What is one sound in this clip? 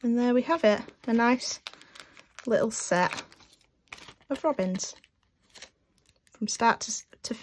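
A plastic wrapper crinkles as hands handle it.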